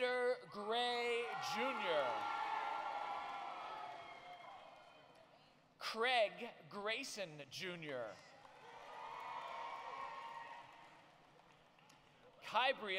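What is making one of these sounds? A crowd cheers and whoops loudly in a large echoing hall.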